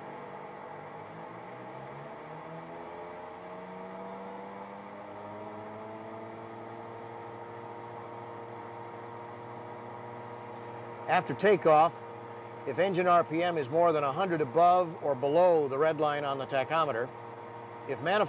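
An aircraft engine spools up, rising in pitch, then hums steadily.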